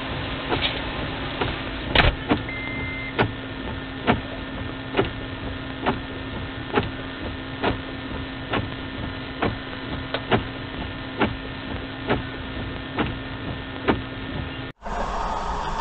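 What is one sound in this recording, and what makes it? A windshield wiper thumps across glass in a steady rhythm.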